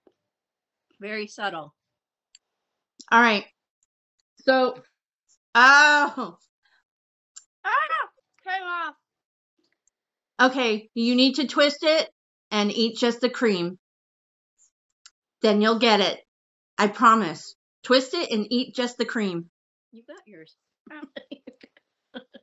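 A girl talks and reacts over an online call.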